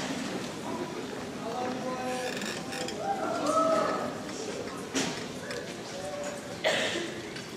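A choir sings softly in a large echoing hall.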